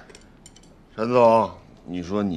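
A man talks casually across a table.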